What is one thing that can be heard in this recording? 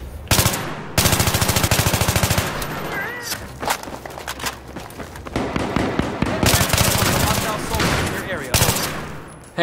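Rapid automatic gunfire rattles in loud bursts.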